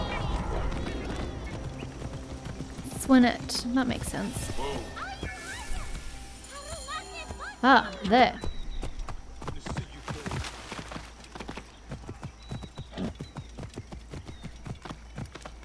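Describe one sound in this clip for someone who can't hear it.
A horse's hooves clop steadily on dirt.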